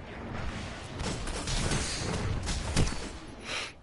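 Gunshots fire in rapid bursts with sharp cracks.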